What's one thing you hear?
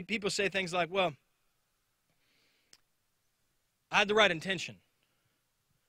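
A man speaks calmly into a microphone, heard through a loudspeaker outdoors.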